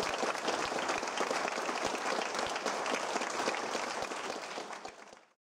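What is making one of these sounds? Drums beat in time with a band.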